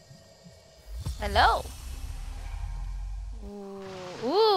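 A soft magical shimmer swells as a glowing plant is gathered.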